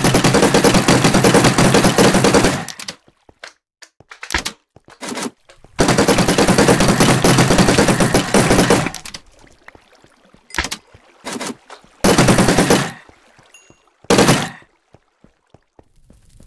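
Game hits thud in quick succession.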